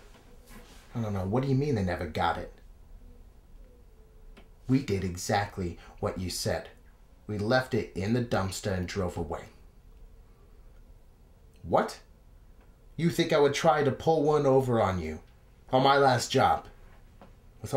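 A young man talks on a phone close by, calmly, with pauses.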